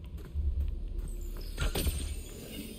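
A bow string twangs as an arrow is loosed.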